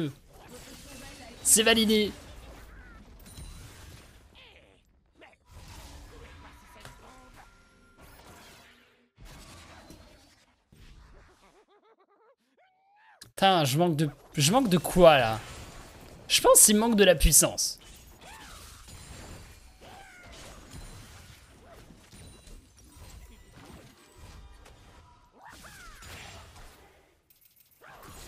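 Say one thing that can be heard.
Game sound effects of spells and fighting play.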